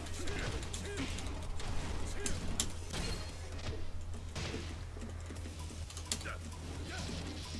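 Punches and kicks land with sharp smacks and thuds in a video game.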